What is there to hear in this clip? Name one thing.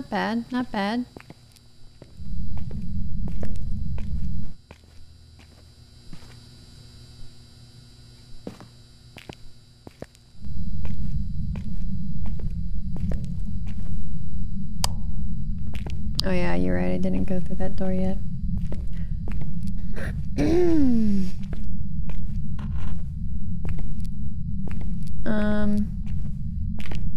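A young woman speaks into a close microphone in short, animated bursts.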